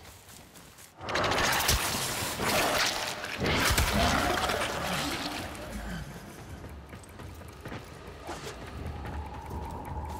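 Video game guns fire during a busy fight.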